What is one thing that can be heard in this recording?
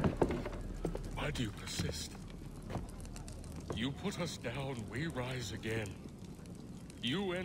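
A man speaks calmly into a nearby microphone.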